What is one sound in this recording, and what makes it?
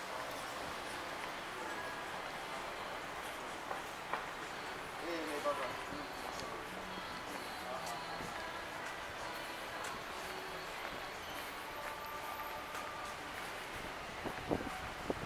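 Traffic hums along a city street.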